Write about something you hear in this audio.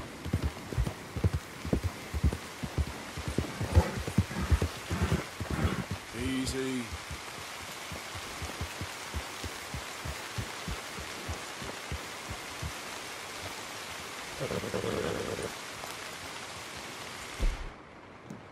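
A light wind blows through trees outdoors.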